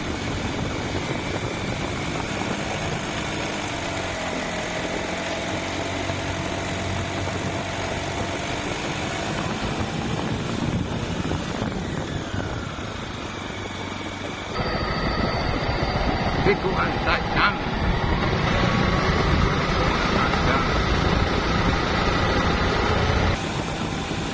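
A motorbike engine hums steadily.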